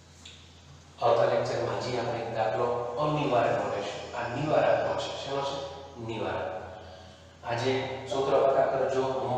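A middle-aged man speaks calmly and clearly through a headset microphone.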